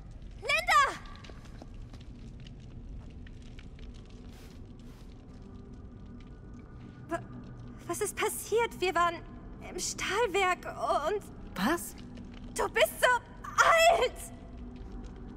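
A young man shouts a name, then speaks shakily and with alarm.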